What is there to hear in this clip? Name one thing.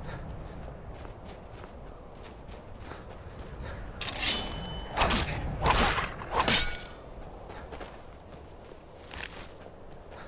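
Wind blows steadily.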